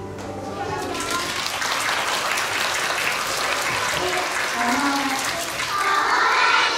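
Many young children chatter and call out all at once in a large echoing hall.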